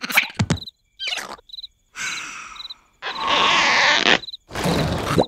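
A cartoon creature snores.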